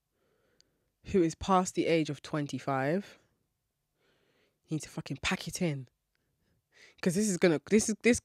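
A young woman speaks expressively and close into a microphone, in bursts with pauses.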